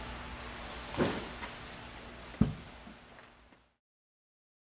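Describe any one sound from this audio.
A plastic headlight housing knocks and clatters as it is handled.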